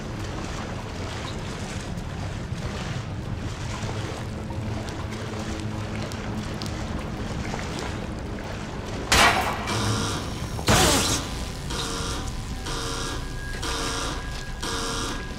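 Footsteps splash through shallow water in an echoing tunnel.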